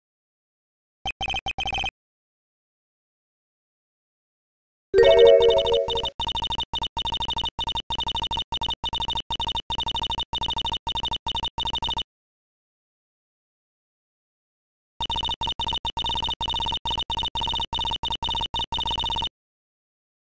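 Rapid high beeping blips chatter as dialogue text types out.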